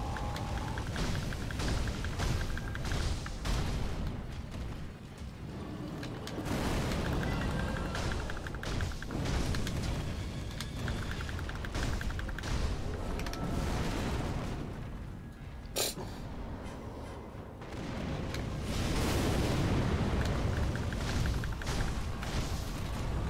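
A sword clashes and slashes with sharp metallic hits.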